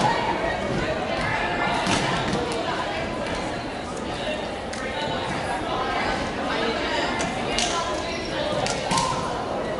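Sneakers squeak and thump on a wooden floor.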